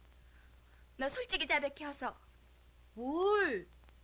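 A young woman speaks sharply, close by.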